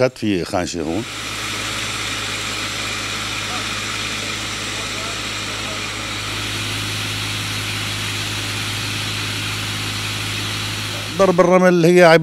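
A sandblasting hose hisses steadily with a loud rushing blast.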